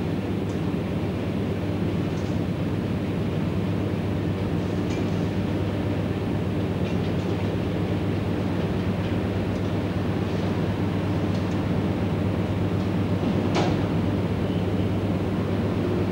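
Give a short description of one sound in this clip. A passenger train rumbles past along the tracks.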